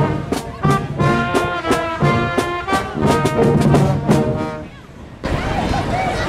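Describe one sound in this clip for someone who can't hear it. A brass band plays a lively tune close by.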